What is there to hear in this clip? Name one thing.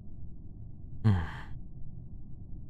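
A video game whooshes.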